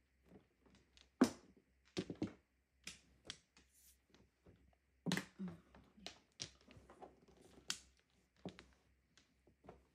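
Plastic tiles clack sharply against each other and the table.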